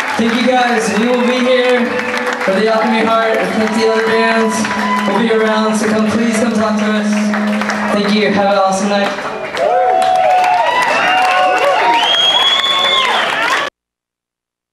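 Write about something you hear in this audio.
A live rock band plays loudly with electric guitars and drums.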